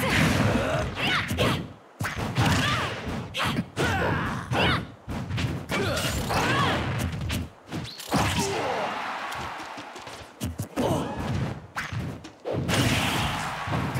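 A video game magic blast bursts with a whooshing crackle.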